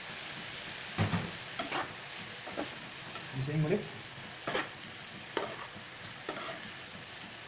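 A metal spatula scrapes and knocks against a pan while stirring.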